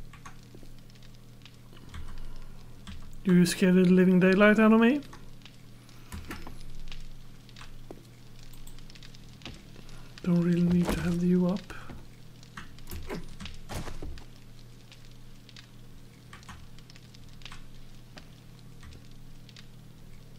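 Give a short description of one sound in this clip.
Footsteps knock on a wooden ladder and boards.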